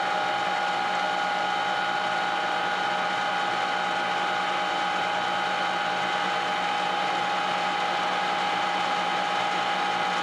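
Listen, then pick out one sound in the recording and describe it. A metal lathe whines as it spins.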